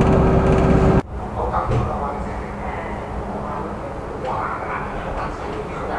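Inside a tram, a quieter hum and rattle of the ride goes on.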